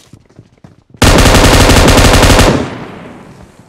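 A rapid burst of loud gunfire rattles.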